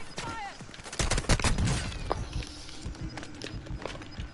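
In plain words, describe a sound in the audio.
Gunshots crack in short rapid bursts.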